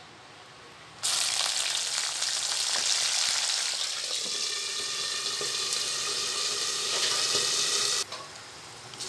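Hot oil sizzles loudly in a pan.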